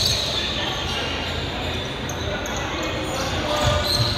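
A basketball bounces with dull thuds on the floor.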